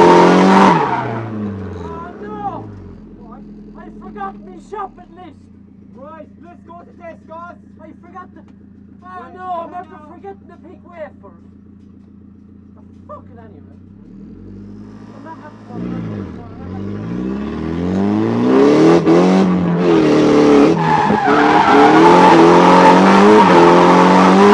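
A car engine revs loudly as the car accelerates.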